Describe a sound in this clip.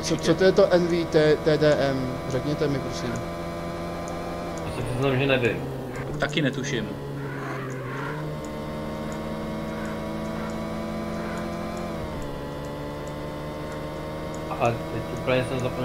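A car engine drones steadily, its pitch dipping and rising as the car slows and speeds up.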